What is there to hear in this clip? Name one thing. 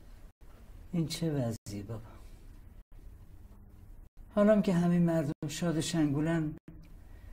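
A woman speaks quietly close by.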